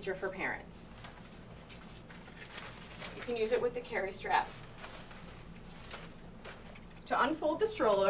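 A folded stroller rattles as it is lifted and set down.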